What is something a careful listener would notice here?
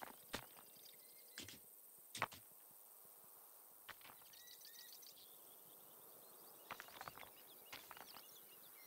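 Pickaxes chip at stone in short, sharp knocks.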